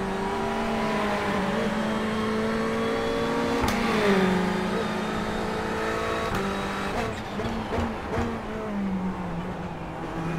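A racing car engine roars steadily, its pitch shifting with gear changes.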